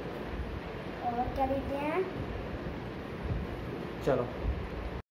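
A young boy speaks briefly, close by.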